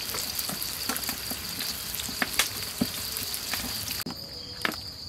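Fish sizzles and crackles in hot oil.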